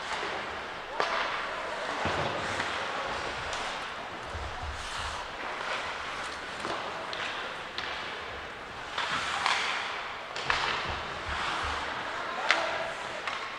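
Sticks clack against a puck.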